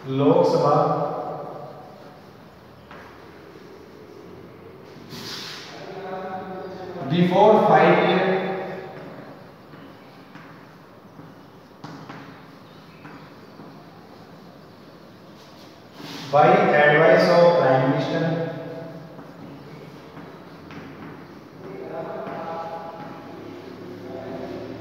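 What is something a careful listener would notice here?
Chalk taps and scratches on a board.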